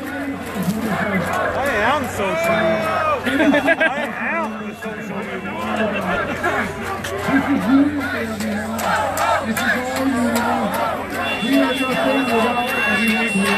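A crowd of men and women talks and shouts nearby outdoors.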